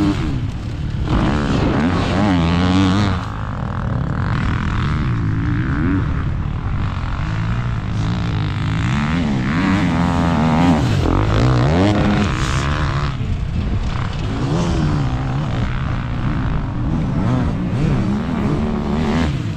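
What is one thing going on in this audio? A dirt bike engine revs hard up and down close by.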